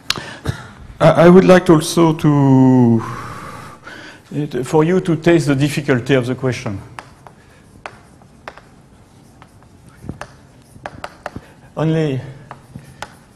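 An elderly man speaks calmly in a lecturing tone.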